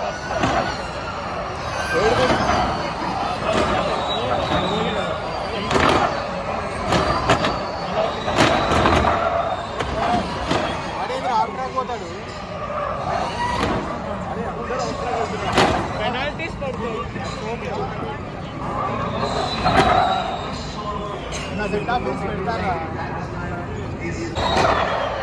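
A crowd of spectators chatters outdoors.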